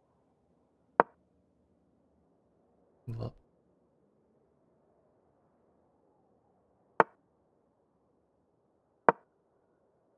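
A short, sharp wooden click sounds as a chess piece is moved, a few times.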